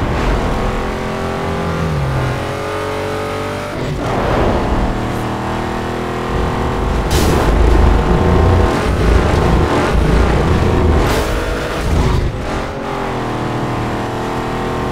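A racing car engine roars at high revs and shifts gears.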